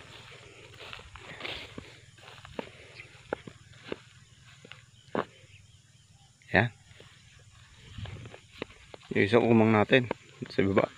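Wind blows through tall grass outdoors.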